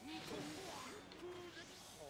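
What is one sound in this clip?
A rushing gust of wind whooshes past.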